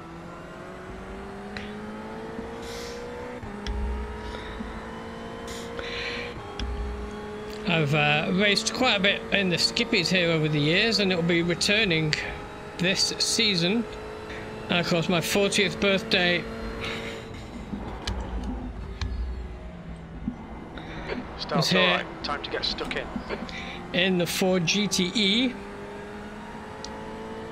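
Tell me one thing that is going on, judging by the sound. A race car engine drones steadily, shifting pitch with the gears.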